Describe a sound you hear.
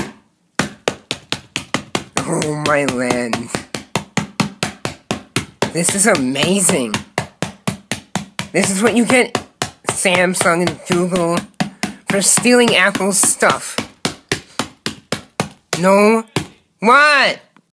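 A hammer strikes glass again and again in quick, sharp blows.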